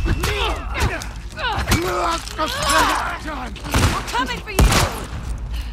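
Heavy blows thud and smack in a scuffle.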